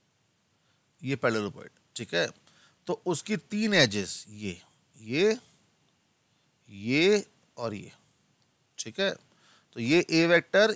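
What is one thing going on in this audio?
A man speaks calmly and explains, close to a microphone.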